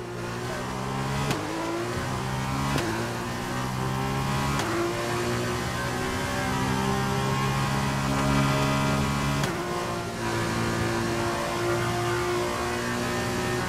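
A racing car engine screams at high revs, climbing in pitch through the gears.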